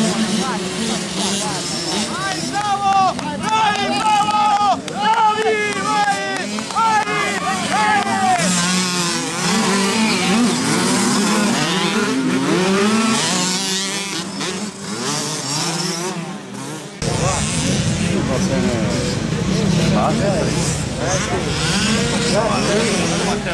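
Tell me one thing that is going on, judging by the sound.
Motorbike engines rev loudly and whine as they race past.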